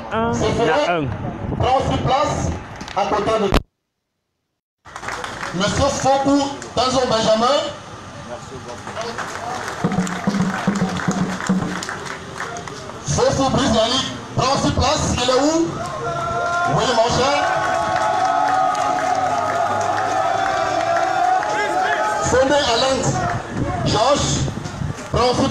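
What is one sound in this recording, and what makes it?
A man speaks with animation through a loudspeaker outdoors.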